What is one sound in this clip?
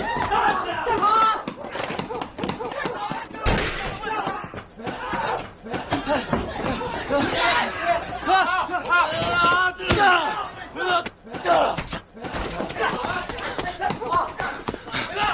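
A young man shouts urgently nearby.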